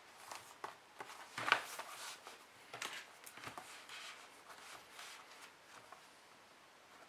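Notebook pages rustle as they are turned.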